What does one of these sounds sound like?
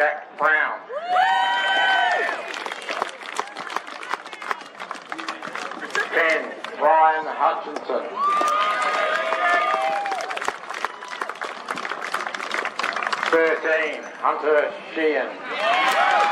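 A crowd cheers and whoops loudly.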